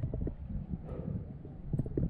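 Glass bottles clink against each other.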